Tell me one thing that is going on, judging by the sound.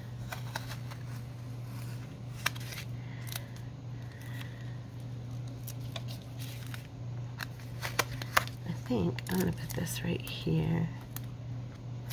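Stiff paper rustles and taps softly as hands handle it.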